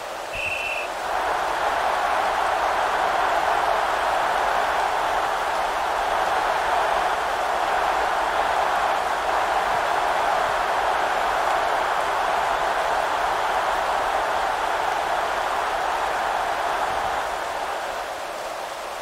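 A large stadium crowd roars and cheers loudly, then dies down.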